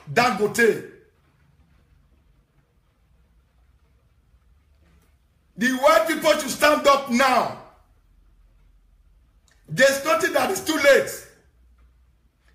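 A young man speaks animatedly and close into a microphone, in short bursts with pauses.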